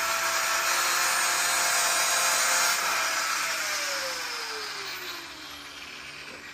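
A power tool whirs loudly close by, then winds down and fades.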